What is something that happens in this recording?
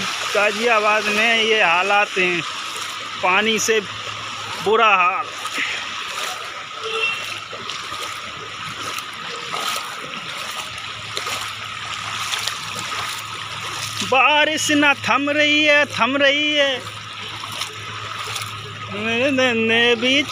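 Water splashes as a bicycle rides through a flooded street.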